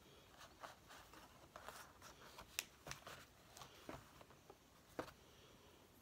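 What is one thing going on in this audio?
Paper rustles and taps softly as hands handle it.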